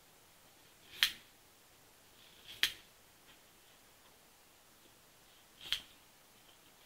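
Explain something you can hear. Scissors snip sharply.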